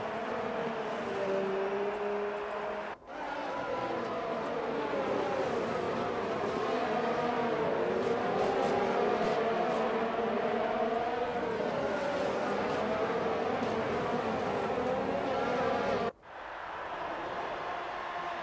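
A racing car engine screams at high revs and shifts pitch as the car speeds past.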